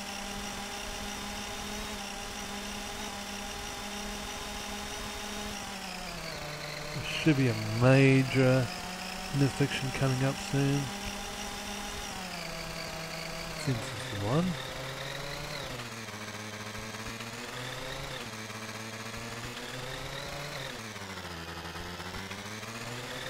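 A scooter engine hums steadily, its pitch rising and falling with speed.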